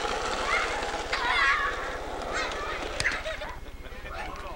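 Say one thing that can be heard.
Children shout and laugh outdoors.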